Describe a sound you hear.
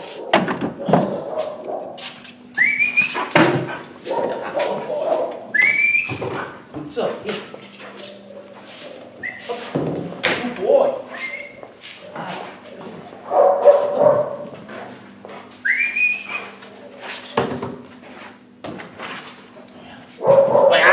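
A man speaks to a dog in an encouraging, high voice.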